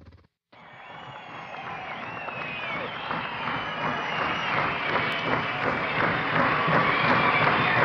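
A live band plays music through loudspeakers, growing louder.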